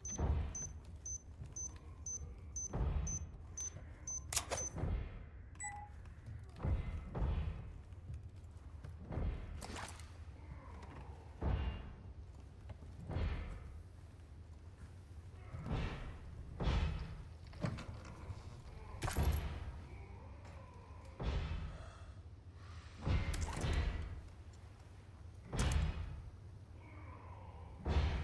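Heavy footsteps thud slowly on creaking wooden floorboards.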